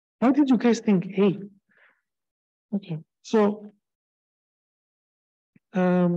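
A man lectures calmly through a computer microphone, pausing between phrases.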